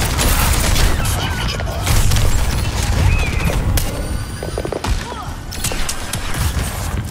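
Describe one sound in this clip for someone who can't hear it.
Gunfire and explosions from a video game ring out rapidly.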